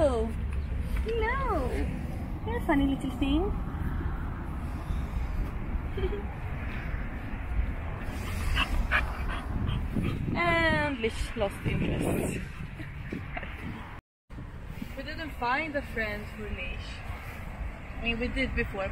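A young woman talks nearby with animation.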